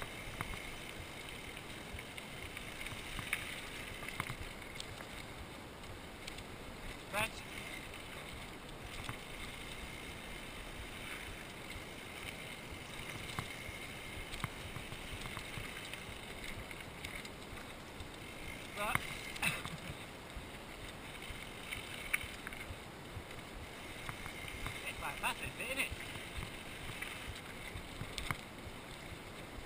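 Mountain bike tyres crunch and roll over a gravel trail.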